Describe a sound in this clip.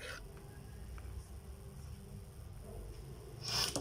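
A compass scratches lightly across paper.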